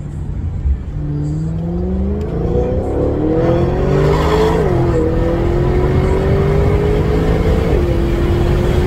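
A car engine revs up and shifts through gears.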